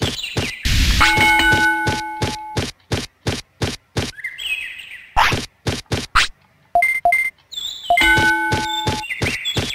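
Short electronic menu tones chime.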